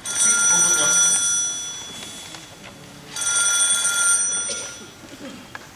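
A young man speaks loudly through a microphone in a large echoing hall.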